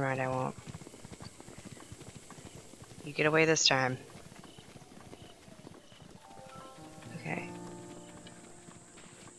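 Quick footsteps patter across soft grass.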